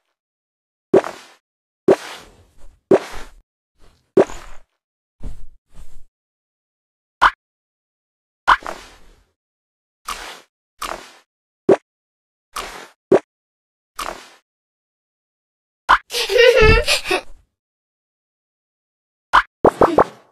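Short game clicks and chimes sound as outfits change.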